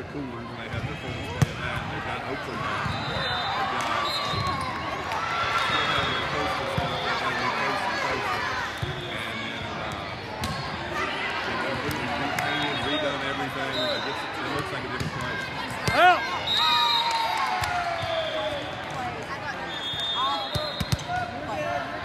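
Young girls call out and shout to each other.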